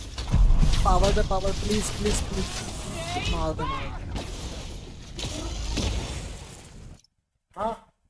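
Heavy blasts and impacts boom during a fight.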